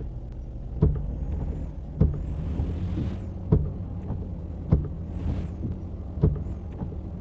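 A semi truck's engine rumbles as it drives.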